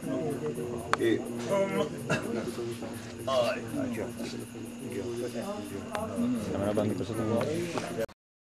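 Several men talk and murmur nearby in a crowd.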